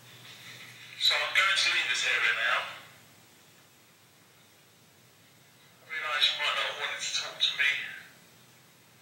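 A man whispers close by.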